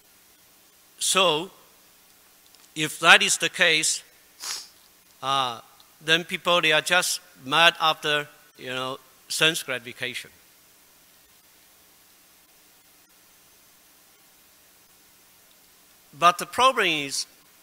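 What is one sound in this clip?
An elderly man speaks slowly into a microphone, in short phrases with long pauses.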